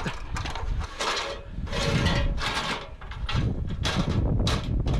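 A metal ladder rattles and clanks as someone climbs it.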